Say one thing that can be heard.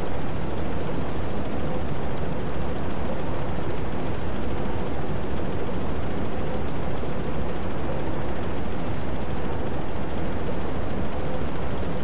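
Waves wash steadily against the hull.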